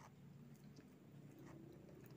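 A woman chews and smacks her lips close to a microphone.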